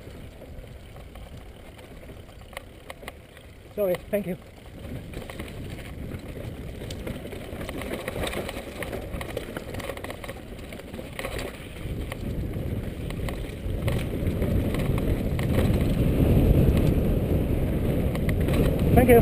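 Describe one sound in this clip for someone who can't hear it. Bicycle tyres crunch and rumble over a rough dirt and gravel trail.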